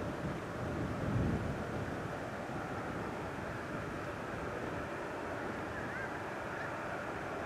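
A jet airliner roars steadily in the distance.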